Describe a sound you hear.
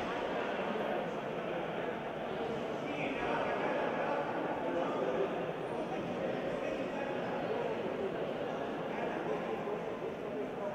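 A crowd of spectators murmurs in a large echoing hall.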